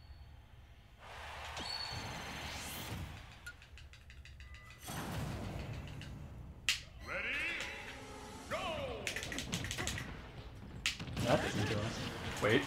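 Video game sound effects whoosh and burst over music.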